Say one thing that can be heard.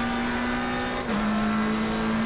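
A racing car engine briefly dips in pitch as it shifts up a gear.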